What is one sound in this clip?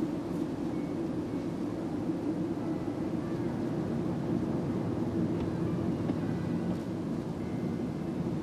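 Tyres roll on the road inside a moving car.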